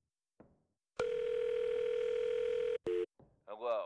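A steady telephone tone sounds from a handset.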